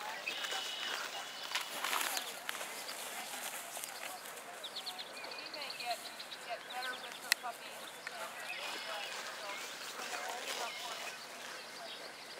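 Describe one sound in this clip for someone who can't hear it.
A crowd of adults and children murmurs and chatters outdoors.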